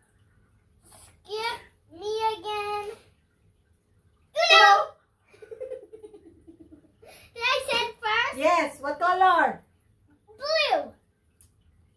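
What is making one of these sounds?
A young girl talks in a high voice close by.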